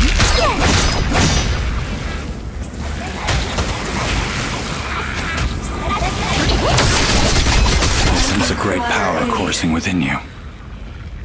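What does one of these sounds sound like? Magical blasts whoosh and crackle loudly in rapid bursts.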